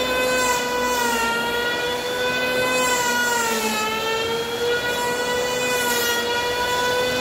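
An electric hand planer whines loudly and steadily as it shaves wood, its pitch dipping slightly under load.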